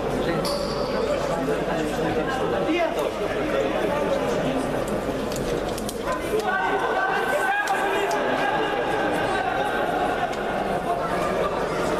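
A crowd of spectators murmurs and calls out in a large echoing hall.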